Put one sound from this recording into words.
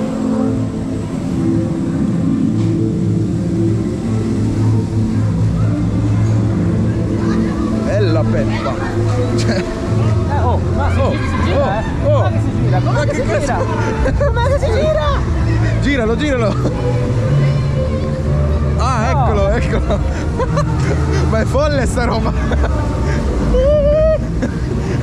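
A fairground ride rumbles steadily as it turns.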